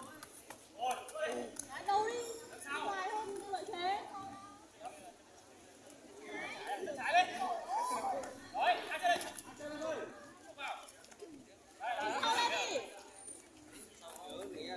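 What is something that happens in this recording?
Children shout and cheer outdoors.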